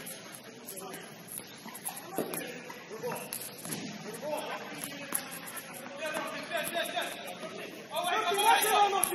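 A ball is kicked with dull thuds in a large echoing hall.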